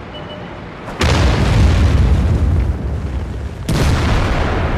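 A tank cannon fires with loud booms.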